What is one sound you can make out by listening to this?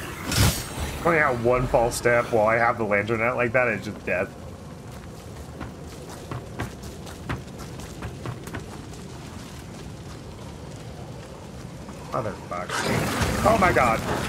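A young man talks through a microphone with animation.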